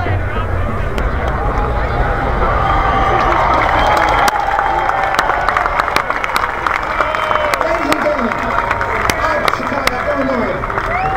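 A large outdoor crowd chatters and cheers all around.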